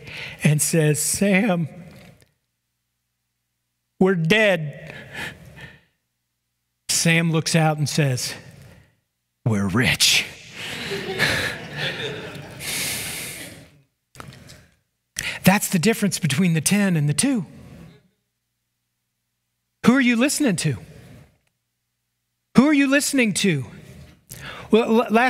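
A man preaches through a microphone, speaking with animation and pausing often.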